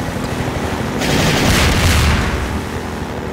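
Water splashes under the buggy's wheels.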